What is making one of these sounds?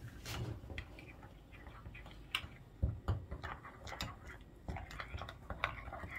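Fingers crumble food into a small cup with soft rustling.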